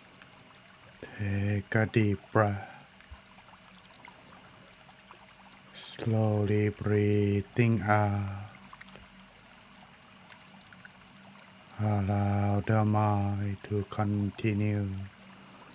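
A man chants slowly in a deep, steady voice close to a microphone.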